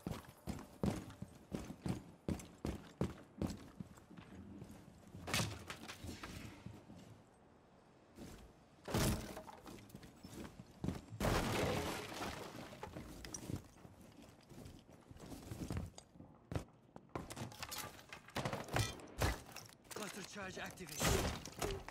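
Footsteps thud quickly on hollow floorboards.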